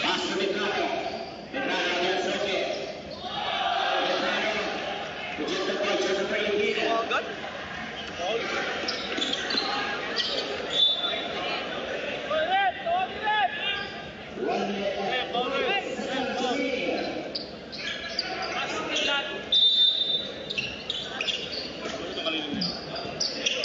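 A large crowd cheers and chatters in a big echoing hall.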